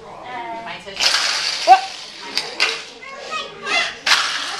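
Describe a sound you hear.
A toy car rolls across a tiled floor.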